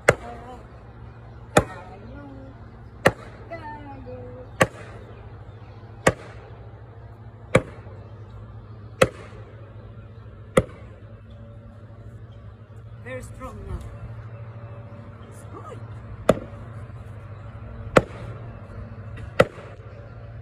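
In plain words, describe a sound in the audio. A sledgehammer strikes a wooden stake with sharp, evenly spaced knocks outdoors.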